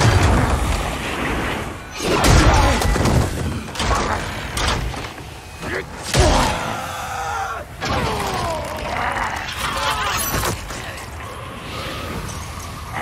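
Metal blades clash and ring out.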